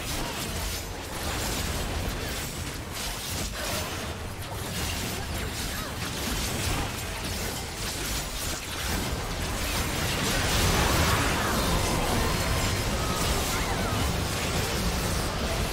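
Magic blasts and clashing spell effects crackle and boom during a fight.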